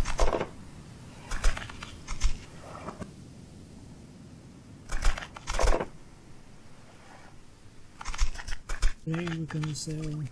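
A wooden crate knocks and clatters as it is picked up.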